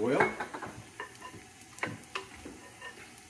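A utensil clinks against a bowl and pan.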